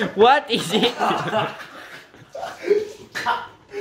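Two young men laugh loudly and shout, close by.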